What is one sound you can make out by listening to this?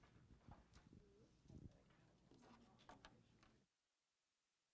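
A woman speaks to a room, heard through a microphone.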